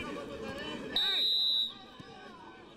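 A referee's whistle blows sharply after a foul.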